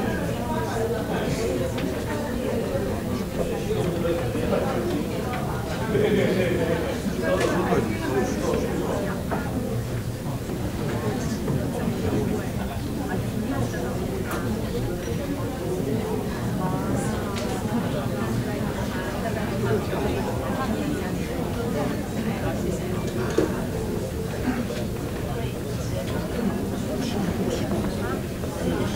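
Several adults murmur and talk quietly in a room.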